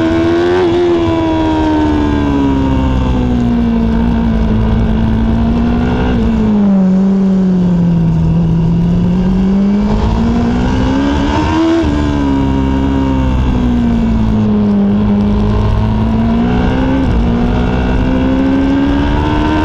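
A racing motorcycle engine roars close by, its pitch rising and falling as it shifts gears.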